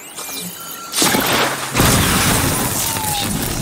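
A mechanical creature whirs and clanks close by.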